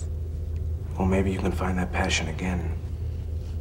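A man speaks softly close by.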